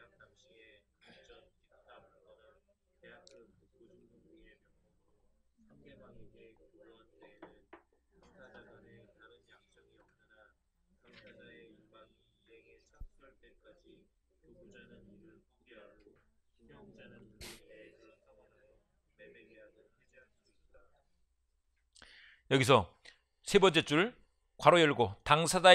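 A man lectures calmly into a microphone.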